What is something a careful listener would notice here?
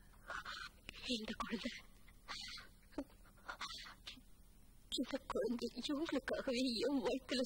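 A young woman speaks earnestly and with rising emotion, close by.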